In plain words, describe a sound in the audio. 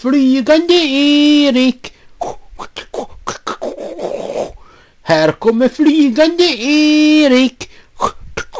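A young woman sings close to the microphone in a high, drawn-out voice.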